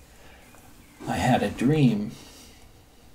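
An elderly man speaks briefly and calmly, close by.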